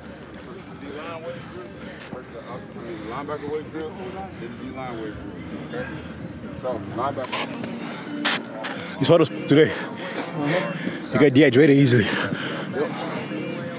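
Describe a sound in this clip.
A young man speaks with energy close by.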